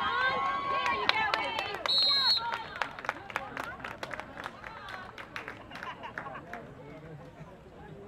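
Football pads and helmets clack as players collide.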